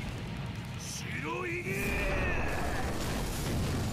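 A man shouts out a name in anguish.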